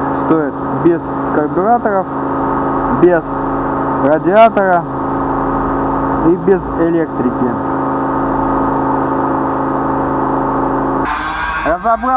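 An engine idles with a steady hum.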